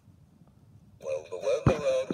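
A toy plays a tinny electronic tune.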